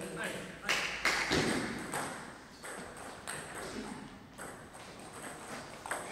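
A table tennis ball clicks back and forth off paddles and a table in an echoing hall.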